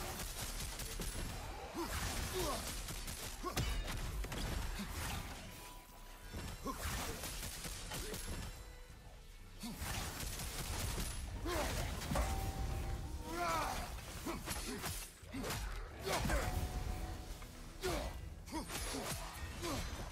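Weapons clash and strike with heavy impacts.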